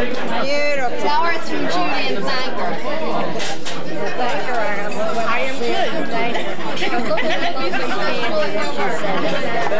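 An elderly woman speaks nearby.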